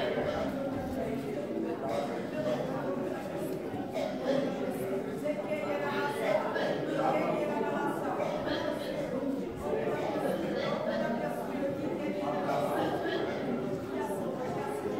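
A crowd of men and women pray and talk aloud at once in an echoing hall.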